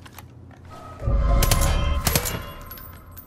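A gun fires loud, booming shots close by.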